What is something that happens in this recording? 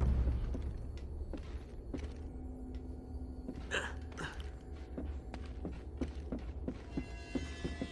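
Footsteps thud on creaking wooden boards.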